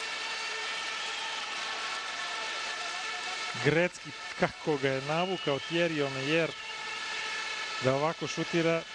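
A large crowd cheers and roars in an echoing arena.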